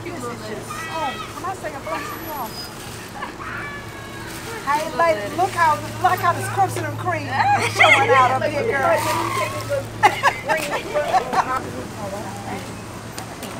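Women talk with animation nearby, outdoors.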